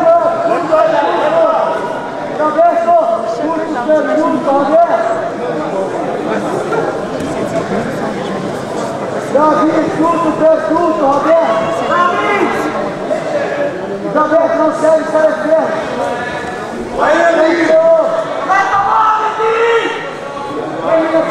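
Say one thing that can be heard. Men call out and shout loudly in a large echoing hall.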